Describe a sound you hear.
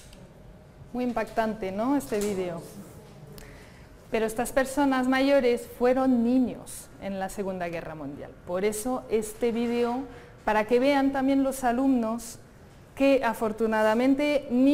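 A woman speaks with animation through a microphone in a large room.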